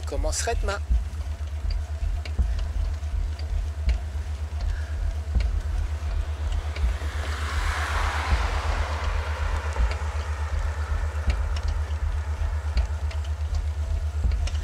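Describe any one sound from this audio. Wind buffets and rumbles steadily against the microphone outdoors.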